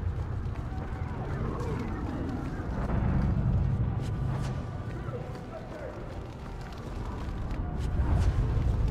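Fires crackle and roar.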